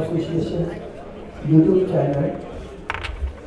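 A man speaks loudly through a loudspeaker.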